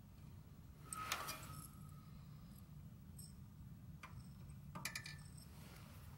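Small metal parts click and scrape as a wire is handled.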